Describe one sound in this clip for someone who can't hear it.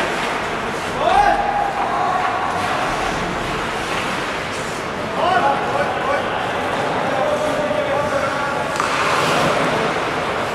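Young men shout to each other across the rink.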